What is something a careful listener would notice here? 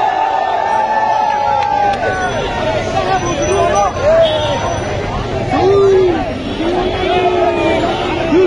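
A large crowd of young men chants slogans in unison outdoors.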